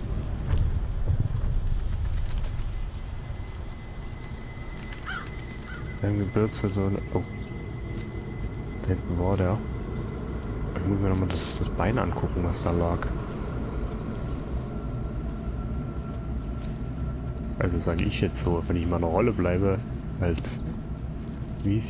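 Tall grass rustles as someone walks through it.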